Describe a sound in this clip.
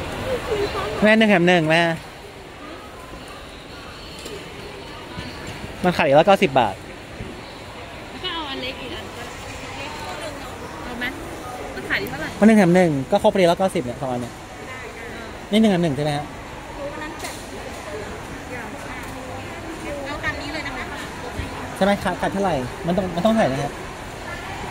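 A young woman speaks close by in short, lively bursts.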